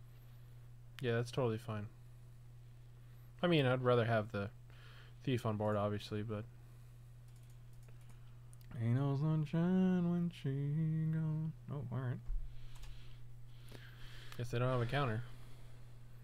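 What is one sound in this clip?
A man talks casually into a close microphone, in short bursts.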